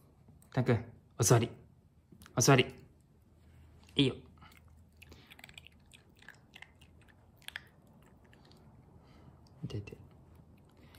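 A puppy yaps sharply in short bursts close by.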